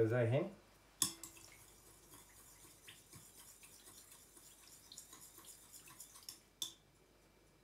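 A spoon stirs and scrapes in a metal bowl.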